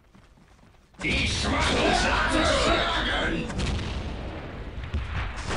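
Guns fire and shells explode in a loud battle.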